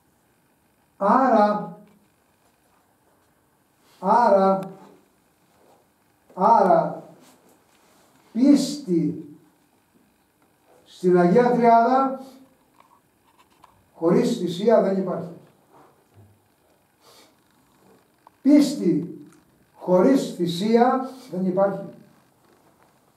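An elderly man sings short, drawn-out phrases close by, with pauses between them.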